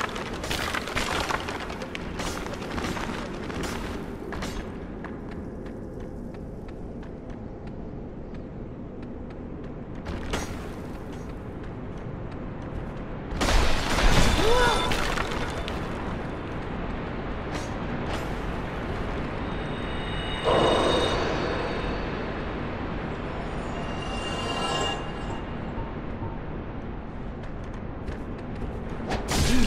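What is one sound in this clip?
Footsteps crunch steadily over stone and gravel.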